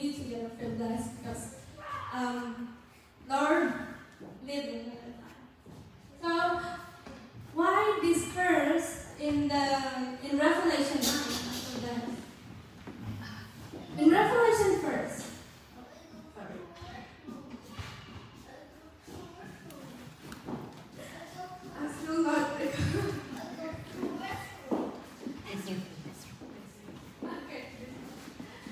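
A young woman speaks with animation through a microphone and loudspeakers in a large echoing hall.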